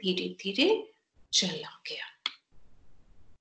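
A woman speaks calmly and expressively, close to a microphone.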